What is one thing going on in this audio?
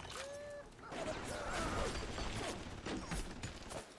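A machine gun fires in bursts.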